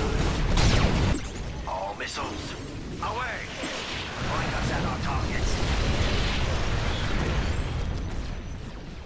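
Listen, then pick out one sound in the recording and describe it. Rapid gunfire and blasts rattle in a loud battle.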